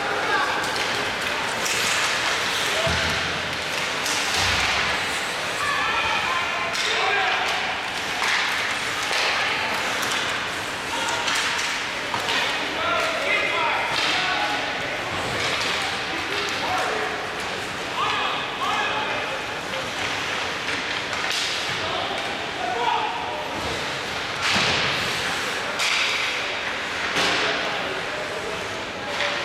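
Spectators nearby talk and call out in a large echoing arena.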